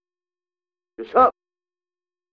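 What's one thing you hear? A short electronic blip sounds.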